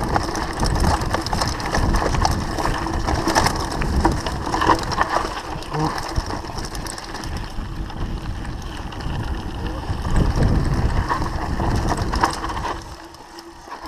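Wind rumbles loudly past the rider.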